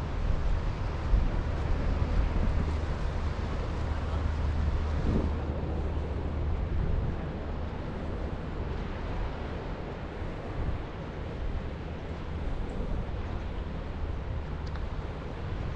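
Waves wash against rocks in the distance.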